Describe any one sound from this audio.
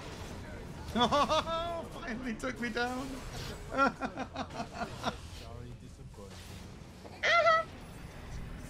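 A man speaks animatedly and close to a microphone.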